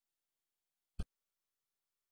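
A single short menu click sounds.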